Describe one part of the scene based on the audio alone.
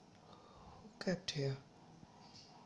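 A young man speaks a few words briefly, close by.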